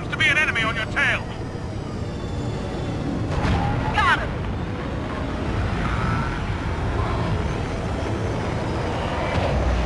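A spacecraft engine hums with a low, steady rumble.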